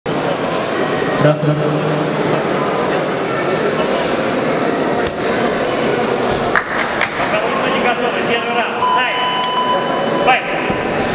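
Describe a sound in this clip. A small crowd murmurs and calls out in a large echoing hall.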